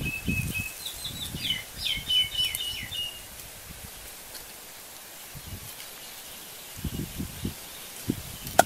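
A knife chops meat on a wooden block with dull thuds.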